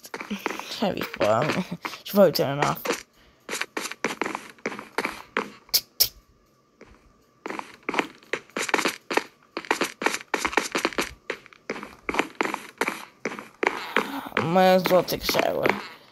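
Footsteps tap steadily on a wooden floor.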